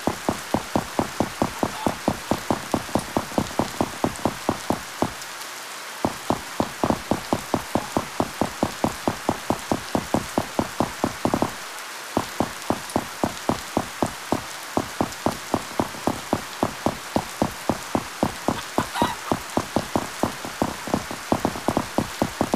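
Quick footsteps crunch steadily on snow, pausing briefly twice.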